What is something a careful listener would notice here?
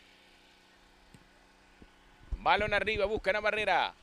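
A football is kicked hard with a dull thump.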